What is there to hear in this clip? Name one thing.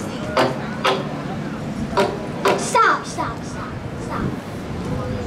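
A man strikes percussion pipes with mallets, making sharp ringing knocks.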